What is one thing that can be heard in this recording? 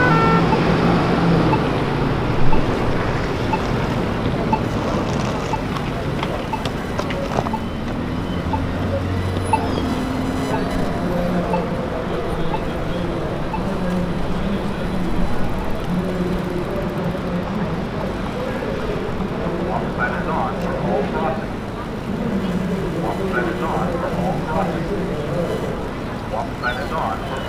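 Busy city traffic hums steadily outdoors.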